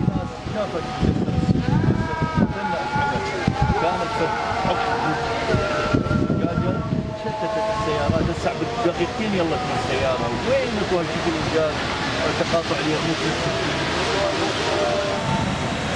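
A middle-aged man speaks calmly outdoors.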